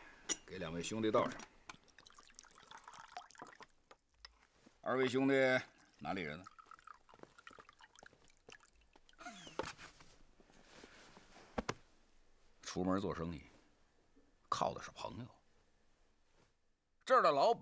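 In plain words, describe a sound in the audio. A middle-aged man speaks calmly and warmly close by.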